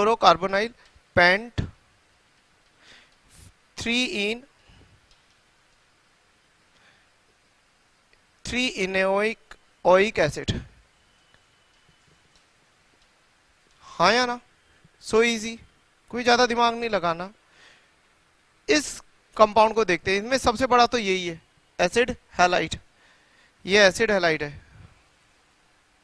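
A man lectures calmly through a headset microphone, in short bursts with pauses.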